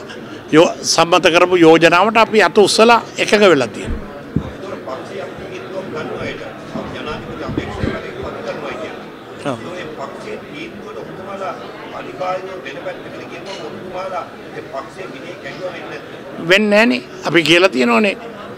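A middle-aged man speaks firmly into microphones, with pauses.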